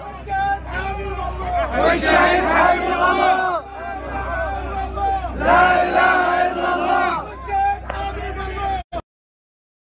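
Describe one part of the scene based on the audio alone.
A large crowd of men chants and shouts loudly close by.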